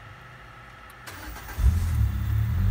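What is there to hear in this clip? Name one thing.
A car engine starts up with a loud crank.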